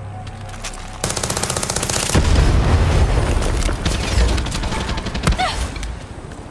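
A rifle fires a burst of loud shots.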